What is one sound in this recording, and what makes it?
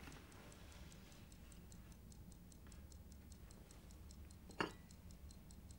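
Small pieces click on a board.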